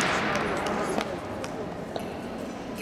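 Light footsteps land softly on a floor mat in a large echoing hall.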